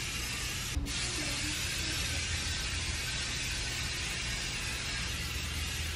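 An aerosol can sprays with a soft hiss.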